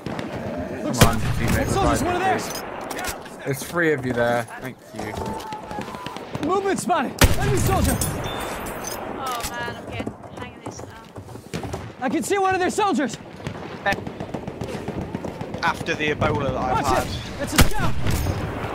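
A Martini-Henry rifle fires a loud shot.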